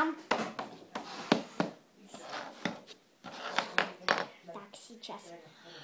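A plastic toy taps and knocks on a wooden table.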